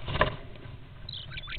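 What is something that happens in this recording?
A starling gives short high chirps.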